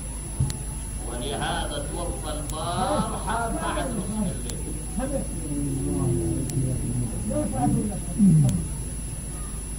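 A middle-aged man preaches with emotion into a microphone.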